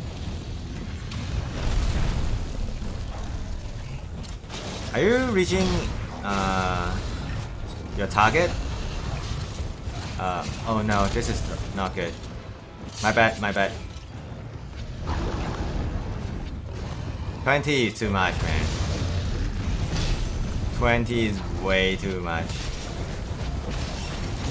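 Fiery blasts boom and crackle.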